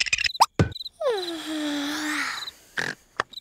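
A cartoon creature yawns loudly with a long, falling groan.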